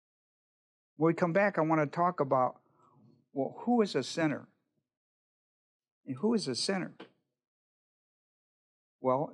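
An elderly man speaks calmly and slowly through a microphone, with pauses.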